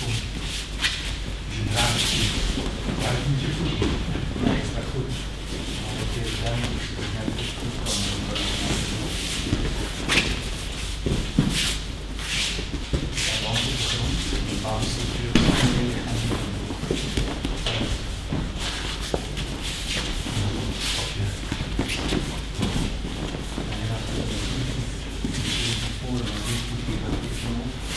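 Bare feet shuffle and slide over the mat.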